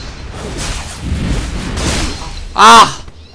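Game sword blows and magic effects clash and whoosh.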